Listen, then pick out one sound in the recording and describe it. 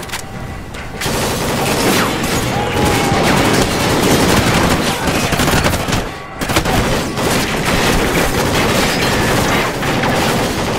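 Gunfire crackles in rapid bursts, echoing through a hard-walled space.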